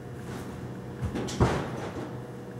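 A pitcher's foot stomps down hard on a mound during a throw.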